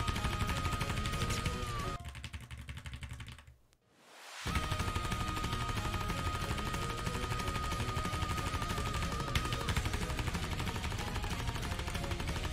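Loud fast rock music plays, cutting out briefly and then starting again.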